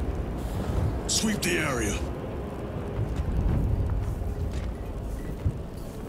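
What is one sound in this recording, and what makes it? A man speaks in a deep, calm voice.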